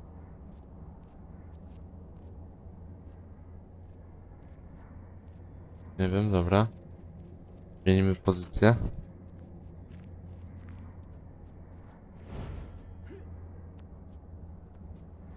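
Footsteps tread steadily across a floor and grass.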